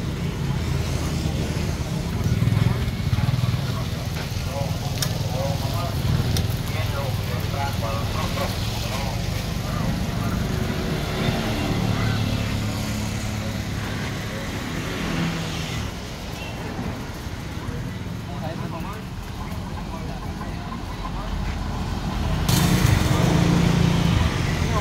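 Street traffic rumbles steadily nearby outdoors.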